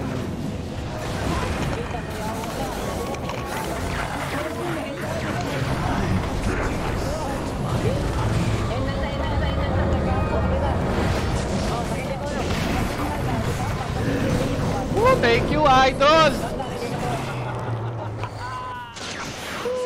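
Game spells and weapons clash and crackle in a fight.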